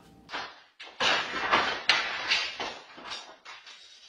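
A wooden pole clatters onto a hard floor.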